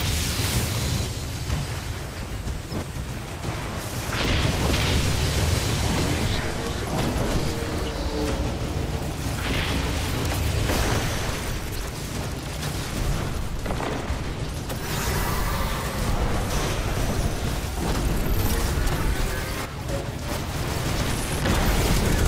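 Energy blasts crackle and boom in a video game.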